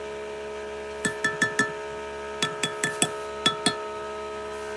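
A spoon clinks against a glass jug several times.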